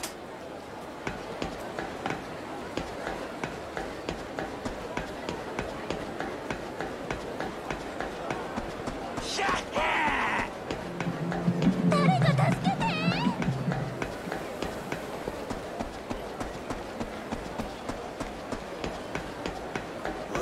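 Quick footsteps run steadily on a hard surface.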